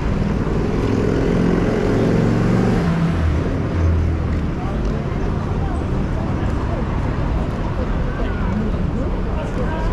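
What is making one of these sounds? A busy crowd chatters and murmurs around outdoors.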